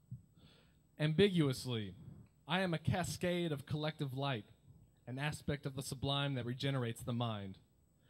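A young man reads out with expression through a microphone.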